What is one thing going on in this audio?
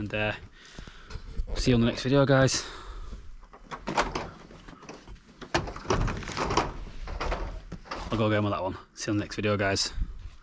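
A man talks close to the microphone, casually.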